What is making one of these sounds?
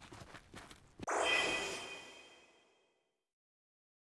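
A menu chime rings out and fades.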